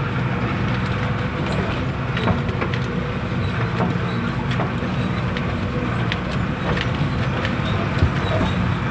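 A vehicle jolts and rattles over a bumpy, potholed road.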